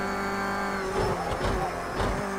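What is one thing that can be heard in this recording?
Car tyres rumble and skid as the car brakes.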